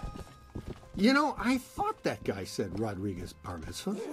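A young man talks with animation close to a microphone.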